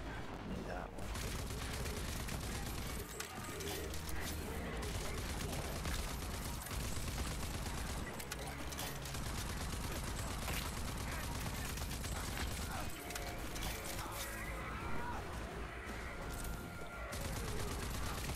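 Rapid gunfire bursts and rattles.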